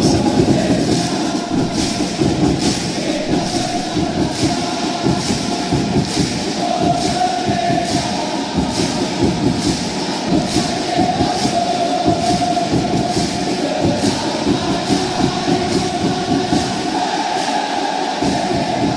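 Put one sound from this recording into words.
A drum beats steadily along with the crowd.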